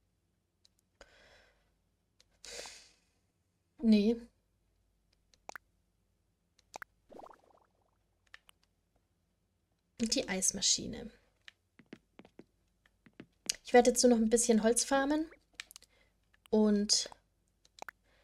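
Short electronic menu blips chime now and then.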